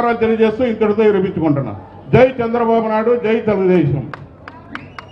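A man speaks forcefully through a microphone and loudspeakers.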